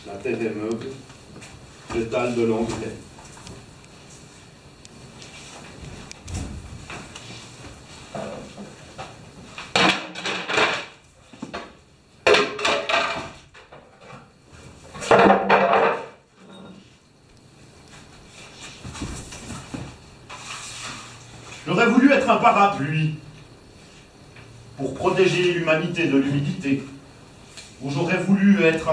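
A man speaks and recites expressively in a room with some echo.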